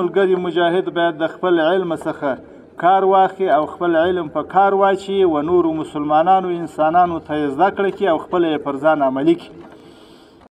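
A man speaks forcefully into microphones outdoors, his voice amplified.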